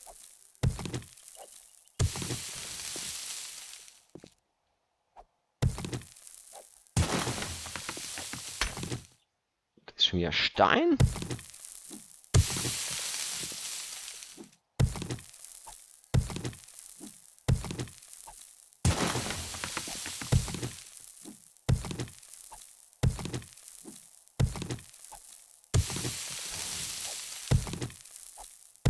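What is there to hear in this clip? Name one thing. A stone tool strikes rock again and again with sharp knocks.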